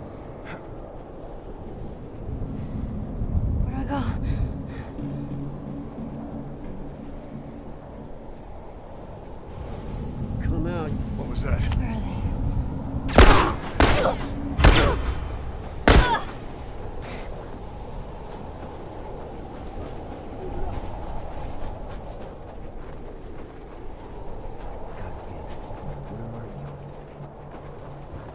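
Wind howls in a blizzard.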